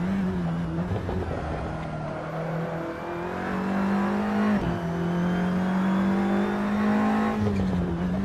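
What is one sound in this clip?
A racing car engine roars steadily, rising in pitch as the car speeds up and dropping briefly at a gear change.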